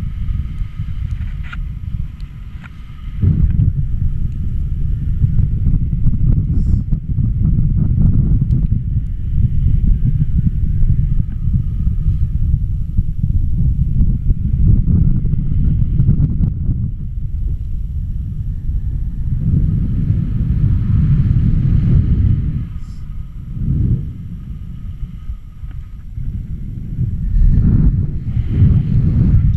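Strong wind roars and buffets loudly past, outdoors high in the air.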